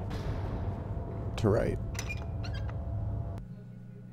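A switch clicks on a wall panel.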